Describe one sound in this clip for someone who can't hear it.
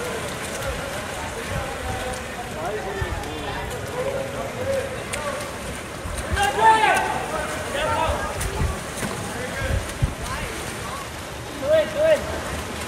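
A crowd of spectators cheers and shouts from poolside.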